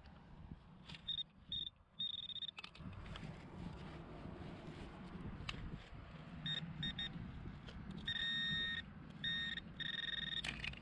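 A handheld metal detector probe beeps in short high bursts.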